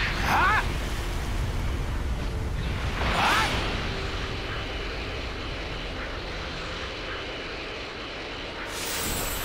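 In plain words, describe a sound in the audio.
Wind rushes past in a steady roar during fast flight.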